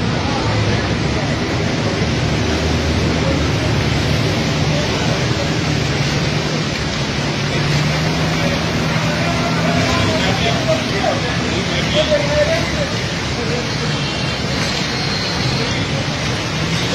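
A motorbike engine hums nearby.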